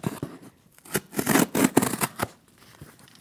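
Scissors slice through packing tape on a cardboard box.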